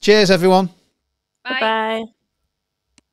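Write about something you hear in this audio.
A woman speaks briefly and cheerfully over an online call.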